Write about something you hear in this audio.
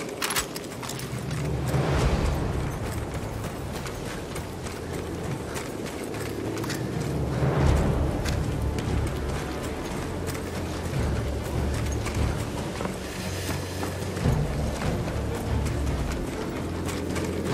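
Distant explosions boom and rumble.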